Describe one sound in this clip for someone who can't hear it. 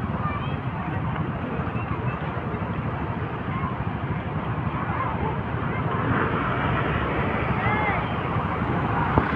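A crowd murmurs along the street.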